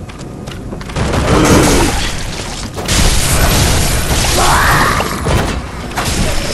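Blades slash and strike with heavy impacts.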